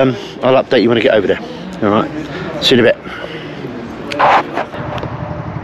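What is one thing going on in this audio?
An elderly man speaks with animation close to the microphone.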